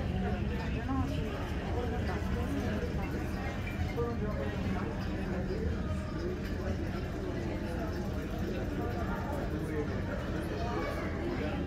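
Several people murmur and chat at a distance in a large echoing hall.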